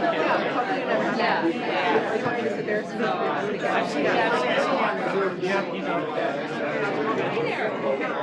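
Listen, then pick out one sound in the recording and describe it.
A man talks.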